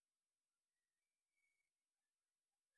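Paper rustles faintly as it is folded.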